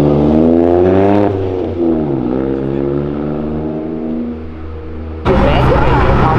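A small car engine hums and rises in pitch as the car pulls away.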